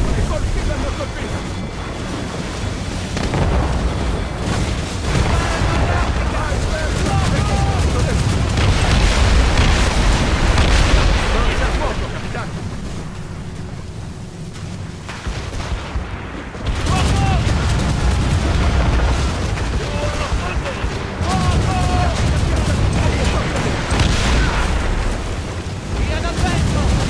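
Waves and wind rush around a sailing ship.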